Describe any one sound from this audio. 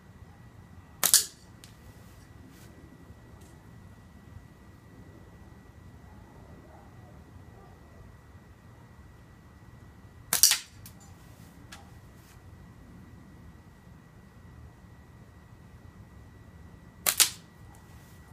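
A thrown object hits a hard target with a sharp smack.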